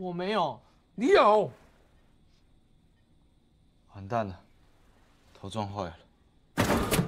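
A young man speaks loudly and with emotion close by.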